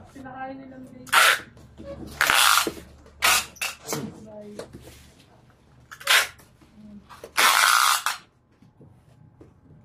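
Packing tape screeches as it is pulled off a roll.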